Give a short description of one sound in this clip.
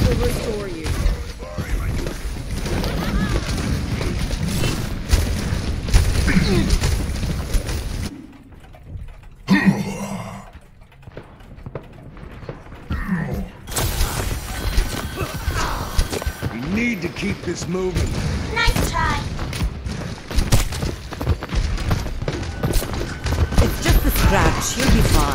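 Video game gunfire and effects rattle on.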